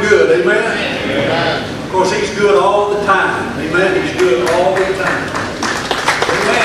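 A man speaks into a microphone over a loudspeaker in a large echoing hall.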